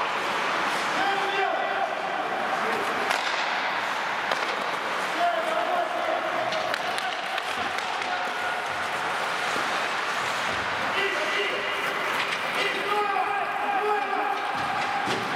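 Players shout to one another across an echoing rink.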